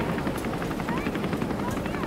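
A helicopter hovers overhead.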